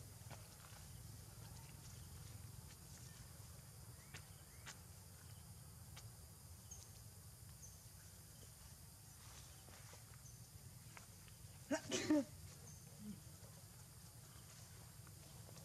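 Leaves rustle as small monkeys move through plants.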